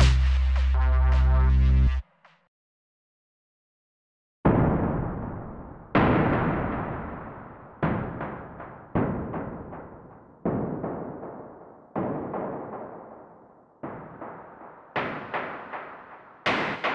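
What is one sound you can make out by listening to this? A synthesizer plays chords that strike and slowly fade.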